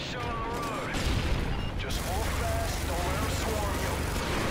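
A heavy engine rumbles and roars.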